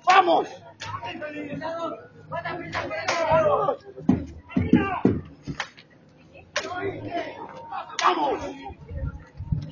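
Men and women talk loudly nearby outdoors.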